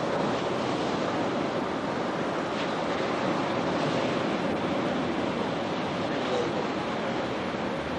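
Waves wash against rocks.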